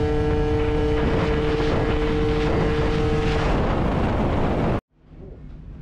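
A scooter engine hums steadily at speed.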